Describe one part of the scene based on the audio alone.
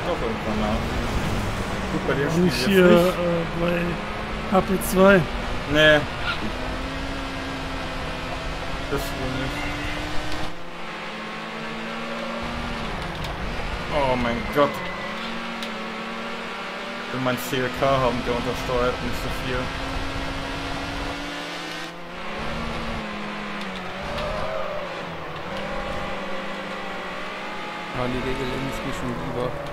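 A racing car engine roars and whines steadily, rising and falling in pitch as the car speeds up and slows down.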